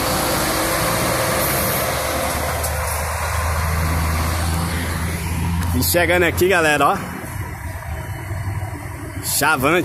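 A bus engine rumbles as the bus drives away.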